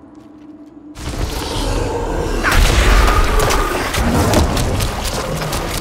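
Video game combat sounds of spells and blows crash and boom loudly.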